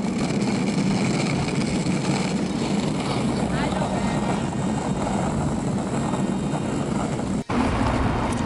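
Skateboard wheels roll and rumble over rough pavement.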